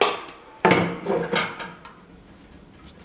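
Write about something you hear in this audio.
Metal clanks as a stove door latch is worked with a poker.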